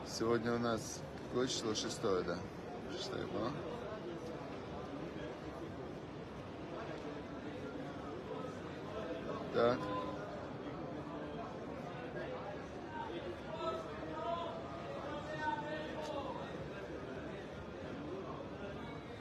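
A crowd murmurs and prays in the distance outdoors.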